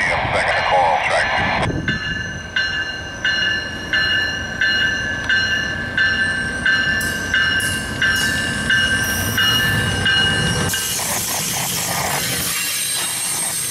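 Train wheels roll and clatter over the rails.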